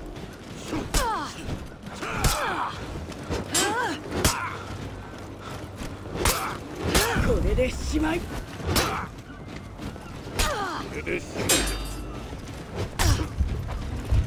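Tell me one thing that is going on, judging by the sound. Armoured fighters grunt and shout with effort.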